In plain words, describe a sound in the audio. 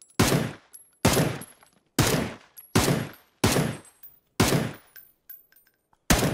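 Single rifle shots ring out loudly at a slow, steady pace, each echoing briefly.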